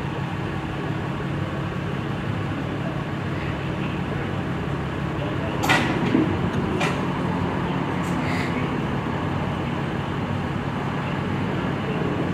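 Men talk quietly nearby in a low murmur.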